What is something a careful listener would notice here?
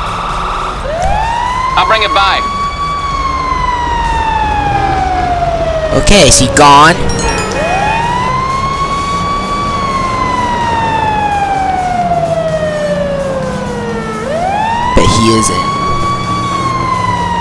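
A fire engine siren wails, rising and falling over and over, close by.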